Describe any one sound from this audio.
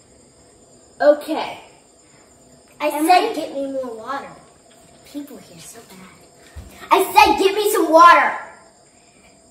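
Another young girl speaks with animation close by.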